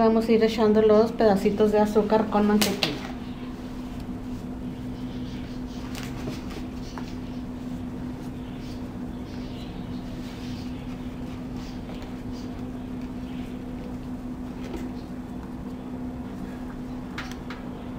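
Hands squish and knead crumbly dough in a bowl.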